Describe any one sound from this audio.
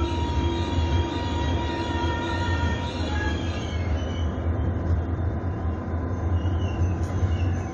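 A passenger train rumbles along its rails as it pulls out of a station.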